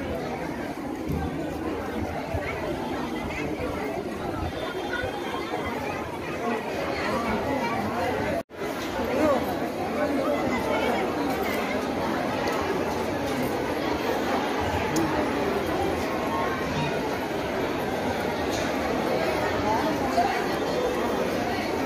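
A crowd murmurs and chatters all around, outdoors.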